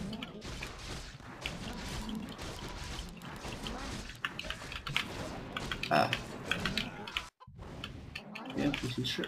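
Weapons clash and strike repeatedly in a fight.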